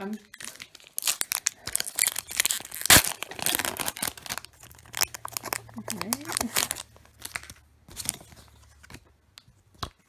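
Plastic card wrappers crinkle and rustle close by.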